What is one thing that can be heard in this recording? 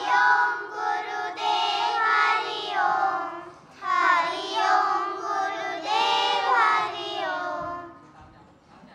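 A choir of children sings together through microphones in a large hall.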